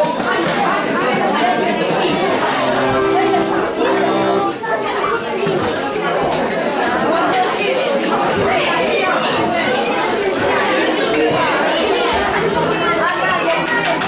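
Children's voices murmur in a room.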